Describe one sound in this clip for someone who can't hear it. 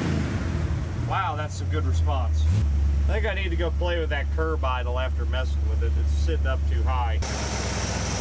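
An engine idles with a low steady rumble.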